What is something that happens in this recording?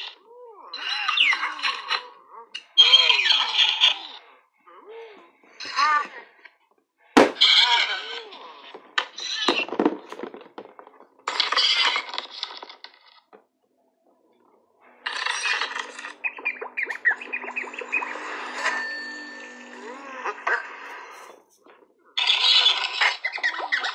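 High, squeaky cartoon voices chatter from small phone speakers.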